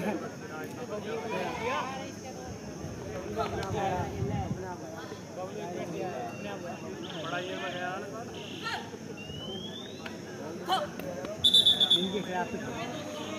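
Boys and young men shout and chatter across an open outdoor ground.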